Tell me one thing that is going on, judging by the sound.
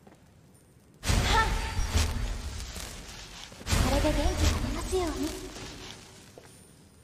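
A magic spell bursts out with a roaring, crackling whoosh.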